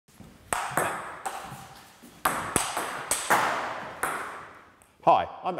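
A ping-pong ball strikes a paddle and a ceiling, echoing in a large hall.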